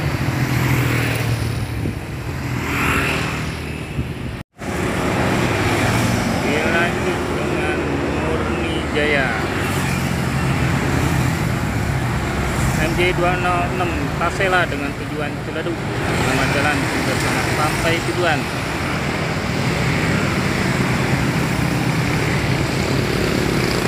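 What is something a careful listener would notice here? Motorbike engines hum and buzz as they pass close by.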